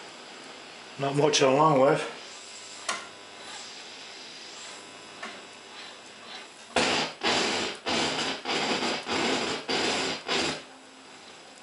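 Bursts of a radio station's sound come through briefly from the radio.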